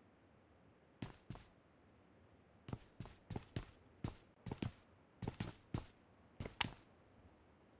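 Footsteps tap quickly across a wooden floor.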